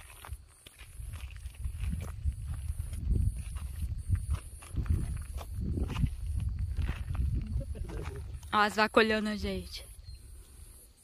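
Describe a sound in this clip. Footsteps crunch on dry gravel.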